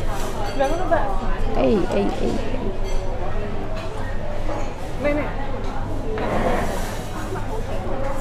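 Chopsticks tap against a ceramic bowl.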